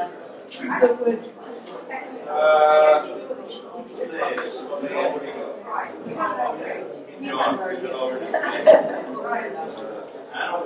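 A middle-aged man speaks with animation to a group in a room with a slight echo.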